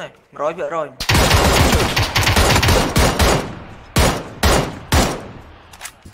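Rapid gunshots fire in quick bursts, loud and close.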